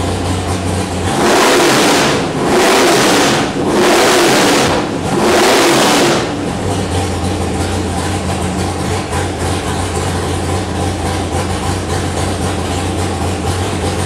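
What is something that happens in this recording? A loud V8 engine idles with a lumpy rumble.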